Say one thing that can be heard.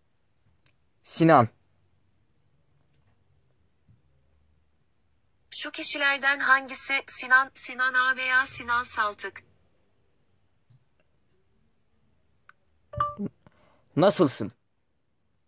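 A phone chimes with a short tone.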